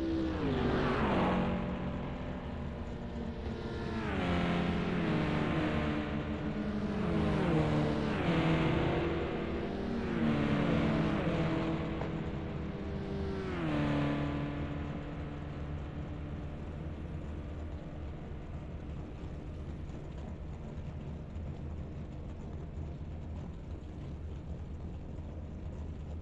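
A racing car engine roars loudly, its pitch climbing and dropping sharply as it shifts gears, then settling into a steady drone.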